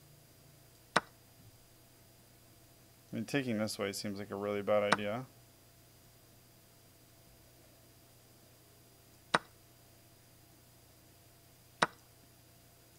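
Short sharp clicks sound as chess pieces are moved in a game.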